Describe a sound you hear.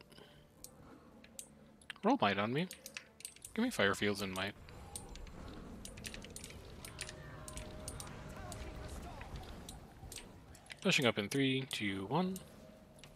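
Game spell effects crackle and clink.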